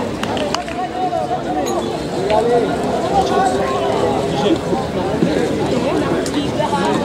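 A crowd of young men shouts and chatters outdoors.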